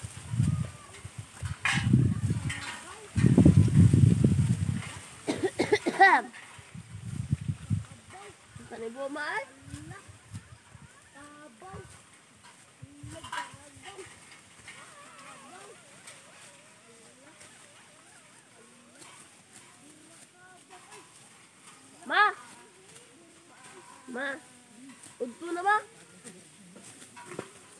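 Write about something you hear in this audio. Sickles cut and rustle through dry rice stalks.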